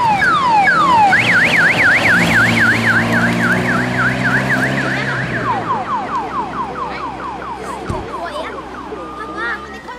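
A rally car engine roars loudly as the car speeds past.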